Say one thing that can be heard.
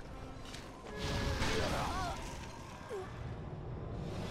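Flames roar in a fiery burst.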